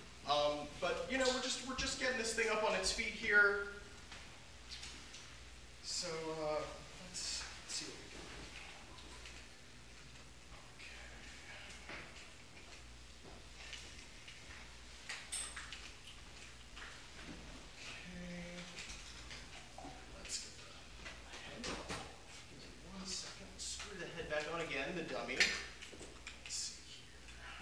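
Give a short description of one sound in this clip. A young man talks calmly in a room.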